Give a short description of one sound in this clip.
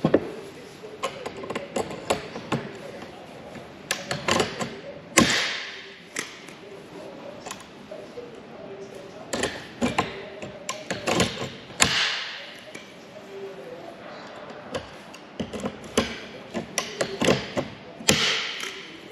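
A hand riveter clicks and snaps as rivets are set.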